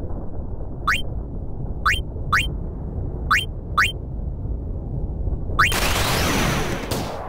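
Low dramatic music plays throughout.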